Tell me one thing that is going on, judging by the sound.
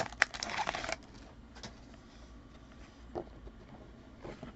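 Trading cards slide and flick against each other in hands.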